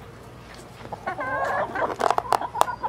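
A hen squawks loudly close by.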